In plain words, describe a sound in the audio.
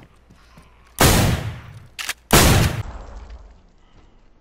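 A shotgun fires twice with loud booming blasts that echo in a room.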